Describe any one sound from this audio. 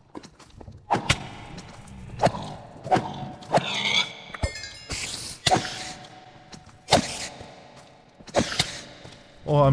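A sword strikes a creature with sharp hits.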